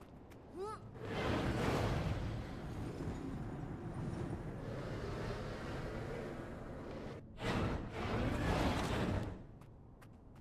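Wind rushes loudly past a gliding figure.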